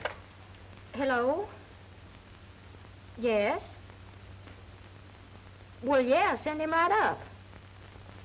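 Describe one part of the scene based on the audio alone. A young woman speaks anxiously into a telephone, close by.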